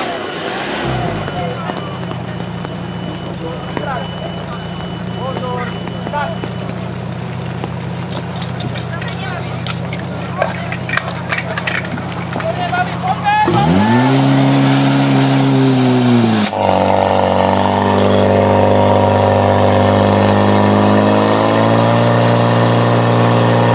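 A pump engine runs with a steady loud drone.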